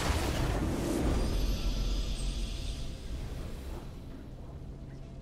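A game victory fanfare swells and fades.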